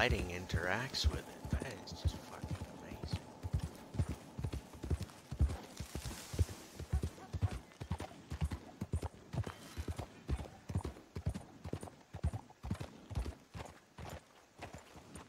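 A horse's hooves clop at a steady walk on soft ground.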